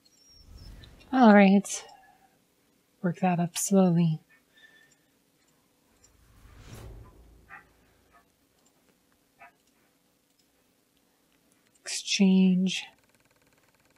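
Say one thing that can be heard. Short chiming tones sound as menus open.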